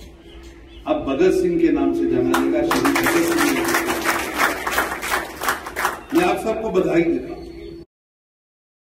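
A middle-aged man speaks loudly and with animation through a microphone and loudspeaker.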